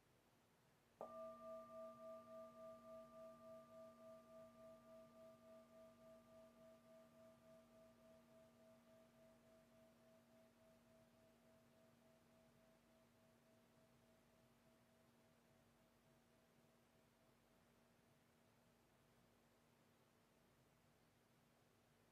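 A singing bowl is struck once and rings out with a pulsing hum that slowly fades.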